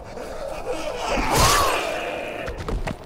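A blade slashes and strikes a body with a heavy thud.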